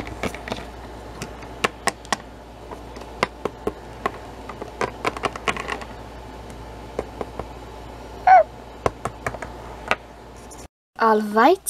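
Small plastic toys tap and click on a hard surface.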